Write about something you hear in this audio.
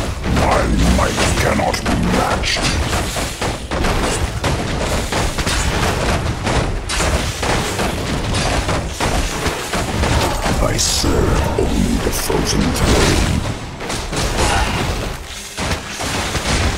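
Weapons clash and spells burst in a busy fantasy battle.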